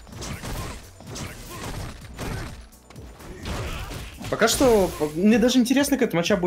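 Punches and kicks land with sharp, heavy thuds.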